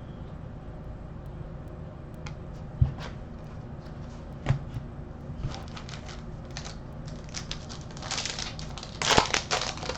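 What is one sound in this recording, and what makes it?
Trading cards rustle and slide on a table.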